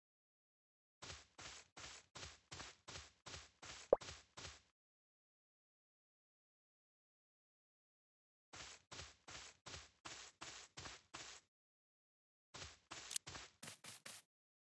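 Light cartoon footsteps patter in quick, even bursts.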